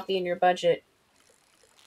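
A young man speaks briefly and with animation into a microphone.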